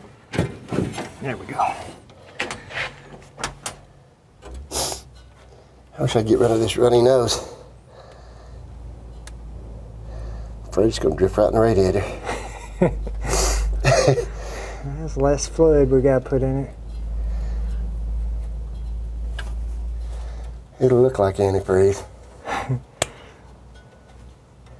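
Tools click and rattle against metal parts.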